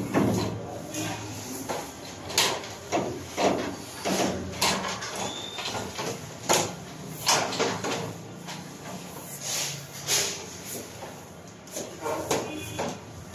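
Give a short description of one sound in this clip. Bundled cables rustle and knock against a ladder.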